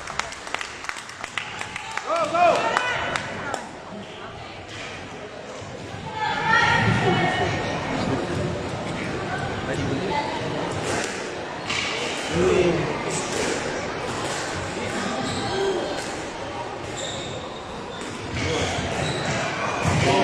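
A squash ball smacks against the walls and racquets, echoing in a large hall.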